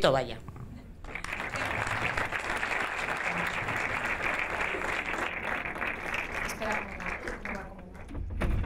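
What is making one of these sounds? An audience applauds steadily.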